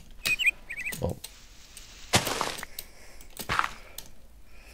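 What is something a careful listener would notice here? A pickaxe digs into dirt with short crunching thuds.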